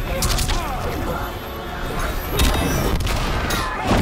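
Explosions boom and burst.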